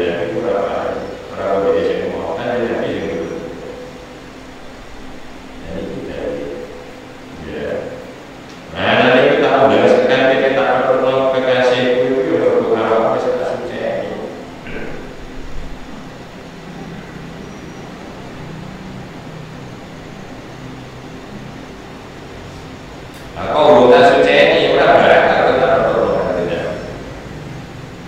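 A middle-aged man recites in a chanting voice through a microphone, with pauses.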